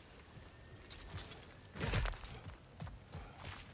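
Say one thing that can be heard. Heavy footsteps thud quickly on stone.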